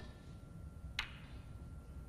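Snooker balls clack together as one ball breaks into a cluster.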